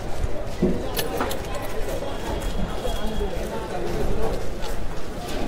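A crowd murmurs outdoors, with a low rumble in the background.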